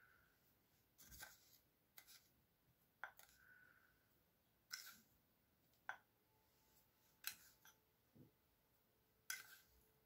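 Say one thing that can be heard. A metal spoon clinks and scrapes against a bowl and jars.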